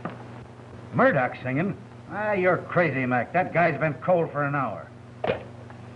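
A man talks into a telephone in a gruff voice.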